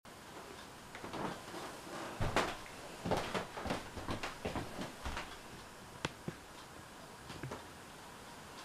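Clothing rustles and things knock softly as a man moves about close by.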